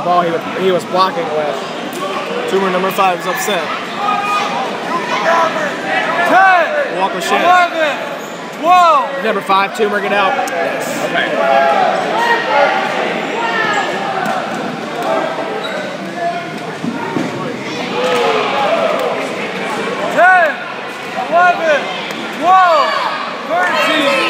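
Many young people talk and shout across a large echoing hall.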